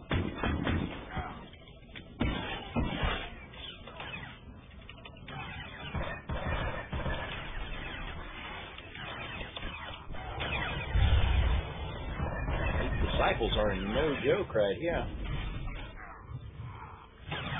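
Blasts and energy bursts crackle and boom.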